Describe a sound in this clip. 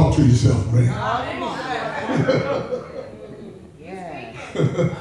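A man preaches with animation into a microphone, his voice echoing in a large room.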